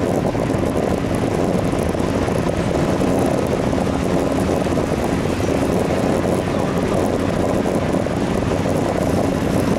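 Wind buffets loudly and steadily outdoors.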